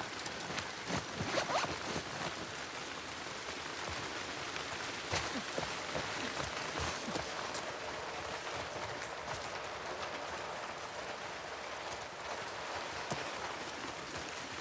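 Tall grass rustles and swishes as a person pushes through it.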